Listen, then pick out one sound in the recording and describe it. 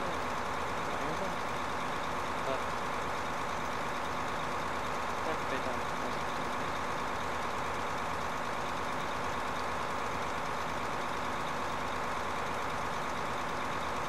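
A spreader hisses as it scatters fertilizer.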